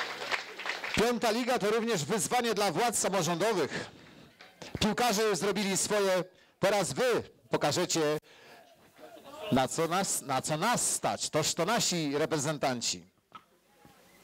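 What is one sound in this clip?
A group of young men sing loudly together.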